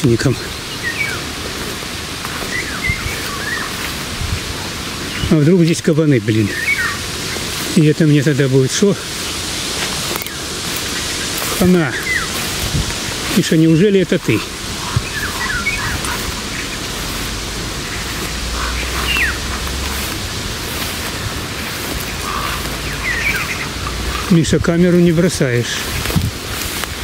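Wind rustles through tall grass and tree leaves.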